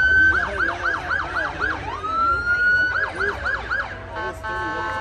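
A fire engine siren yelps rapidly nearby.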